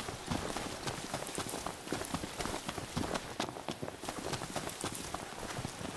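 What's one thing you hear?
Footsteps run quickly over dry grass and dirt.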